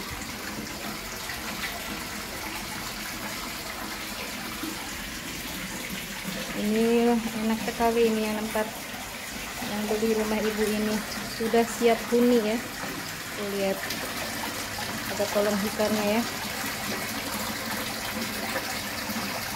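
Water splashes steadily into a pond from a small spout.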